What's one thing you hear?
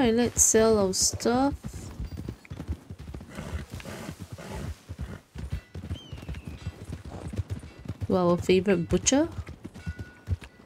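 A horse trots steadily over soft ground.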